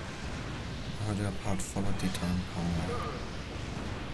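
Explosions boom and crackle in bursts.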